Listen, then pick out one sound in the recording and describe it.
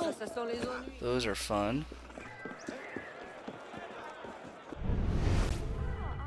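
A crowd murmurs and chatters in a busy street.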